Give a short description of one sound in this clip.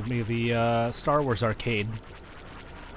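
A small robot chirps and warbles brightly.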